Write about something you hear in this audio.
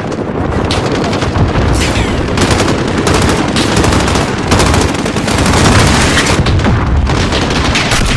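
Gunfire crackles in the distance.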